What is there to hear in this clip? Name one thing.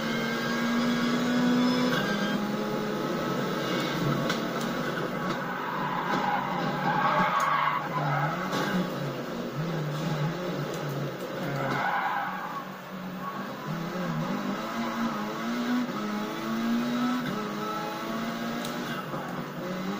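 A racing car engine revs and roars through gear changes from a television.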